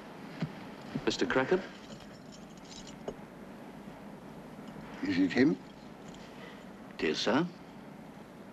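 A man speaks briefly in short bursts nearby.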